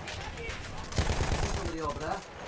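Rifles fire in rapid bursts nearby.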